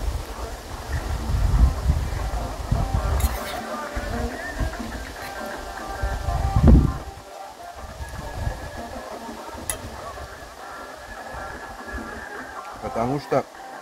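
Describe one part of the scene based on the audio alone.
A man eats, chewing and slurping up close.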